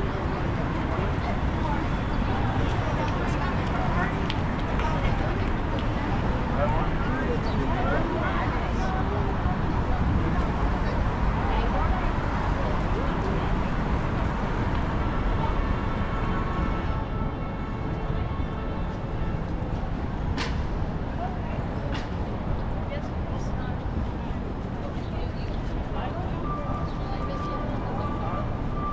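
A busy city street hums with steady traffic noise outdoors.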